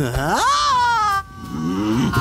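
A man yells in a long, wavering cry.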